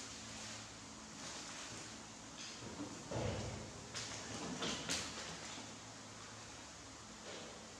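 Small monkeys scamper and thump on a hard floor.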